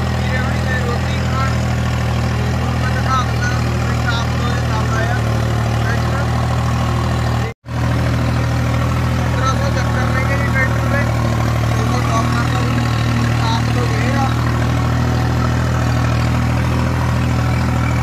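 A tractor engine hums steadily nearby.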